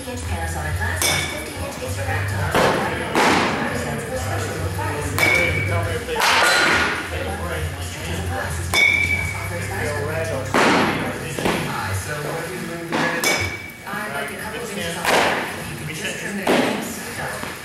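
A bat hits a ball off a tee with a sharp crack.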